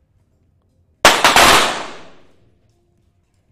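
A pistol fires a sharp shot that rings out in an echoing hall.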